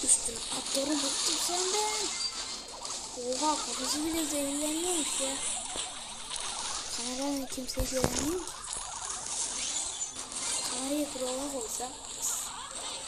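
A boy talks animatedly, close to a microphone.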